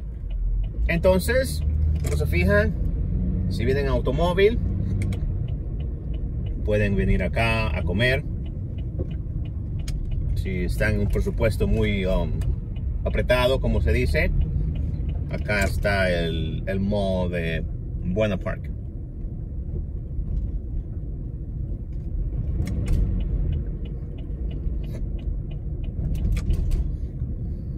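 A car engine hums steadily with tyres rumbling on the road.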